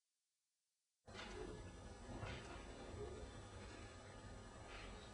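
A small string ensemble plays in a hall.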